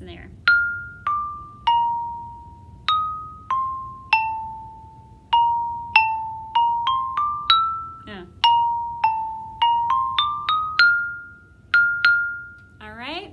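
Mallets strike wooden bars of a marimba, playing a slow melody of ringing notes.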